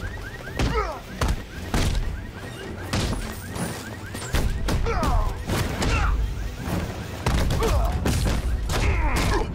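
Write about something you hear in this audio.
Men grunt and cry out in pain.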